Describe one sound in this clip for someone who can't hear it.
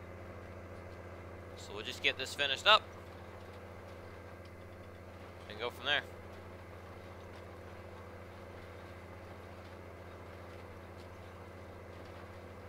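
A tractor engine hums steadily at low pitch.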